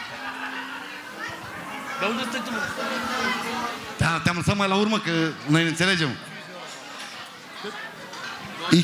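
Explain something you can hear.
A crowd of people chatters in a large room.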